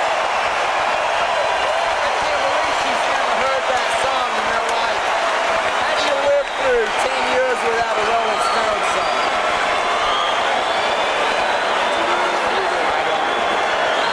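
A large crowd cheers and screams loudly in a big echoing arena.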